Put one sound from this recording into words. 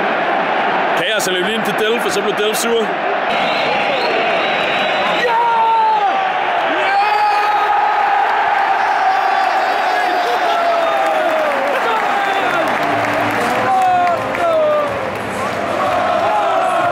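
Young men shout and cheer close by.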